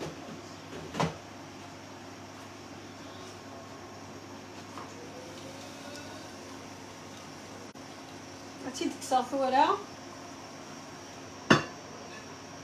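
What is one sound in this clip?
A metal pot lid clanks against a pot.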